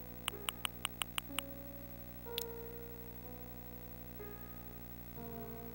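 Gentle game music plays with soft tones.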